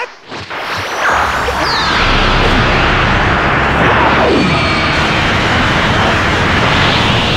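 An energy blast roars loudly.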